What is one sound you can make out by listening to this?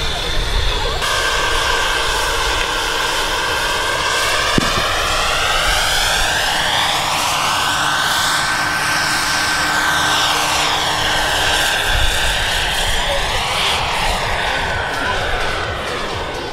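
A small helicopter's engine whines loudly as it flies past.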